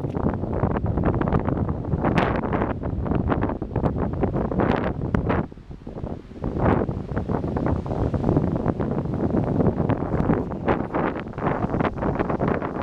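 Strong wind buffets and roars outdoors.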